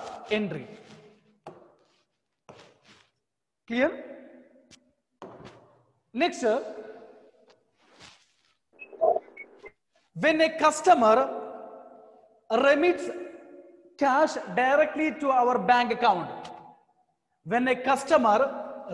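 A man lectures calmly into a microphone, with pauses.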